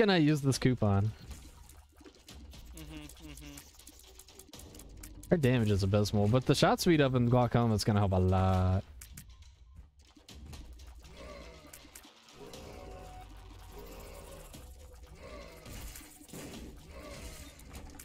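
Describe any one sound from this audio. Video game shots pop and splat in quick bursts.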